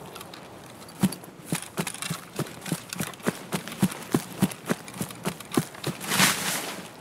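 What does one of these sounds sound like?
Footsteps thud quickly and steadily through tall grass.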